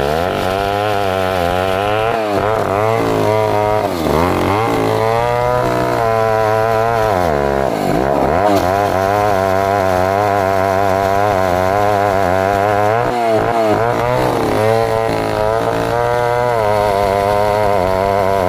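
A chainsaw engine roars loudly, its pitch dipping and rising as it bites into a log.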